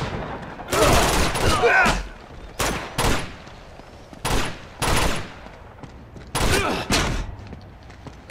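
Gunshots ring out in loud bursts, echoing briefly.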